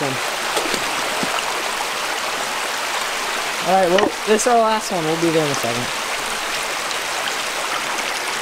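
A shallow stream babbles and flows steadily.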